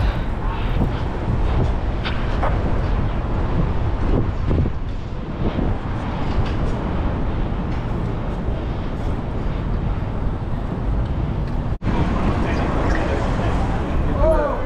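Wind rushes loudly past a moving bicycle rider.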